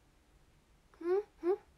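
A young woman gives two short, rising squeals close to the microphone.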